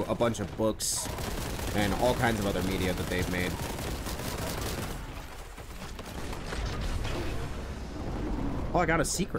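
Rapid gunfire blasts.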